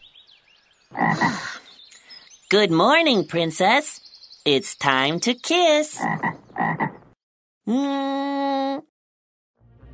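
A cartoon frog character speaks cheerfully, up close.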